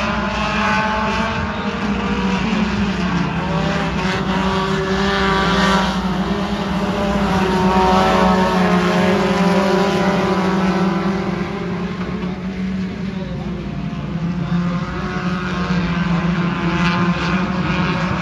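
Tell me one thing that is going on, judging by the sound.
Many race car engines roar loudly, rising and falling as the cars pass.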